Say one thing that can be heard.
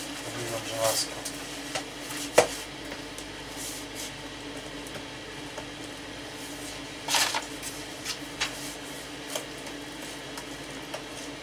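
An iron scrapes and knocks against a wooden sheet.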